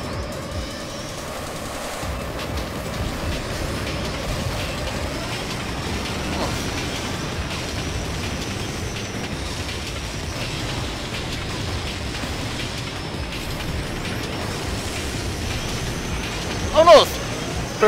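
Racing engines whine and roar steadily.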